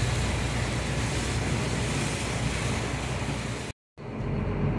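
Heavy rain pours steadily on a moving vehicle.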